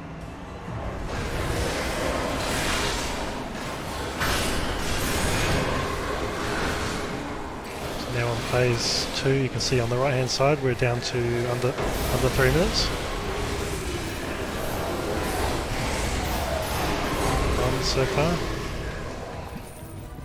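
Spells and weapons clash and boom in a fierce fantasy battle.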